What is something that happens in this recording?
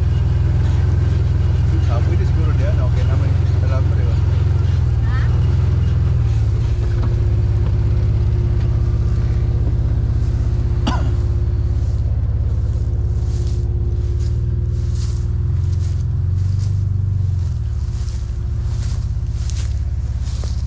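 An engine idles with a steady low rumble close by.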